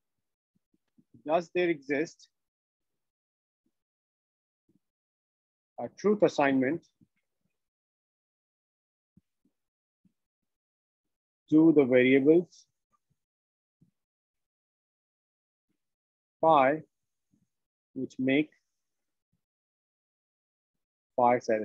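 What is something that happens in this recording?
A man speaks calmly through an online call, in short phrases with long pauses.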